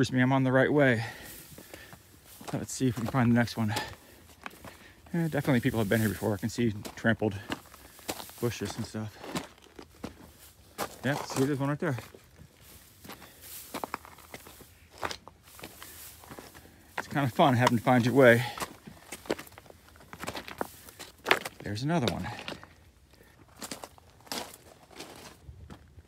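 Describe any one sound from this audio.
Footsteps crunch on rocky ground outdoors.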